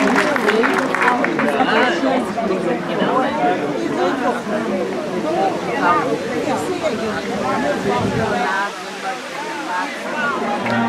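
A large crowd chatters outdoors.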